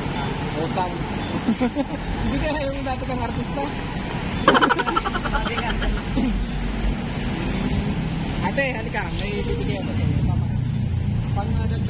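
An elderly woman talks and laughs close by.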